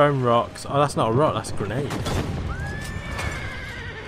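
A horse-drawn cart rattles along over rough ground.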